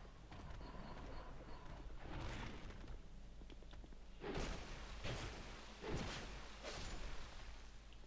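A beast growls and snarls close by.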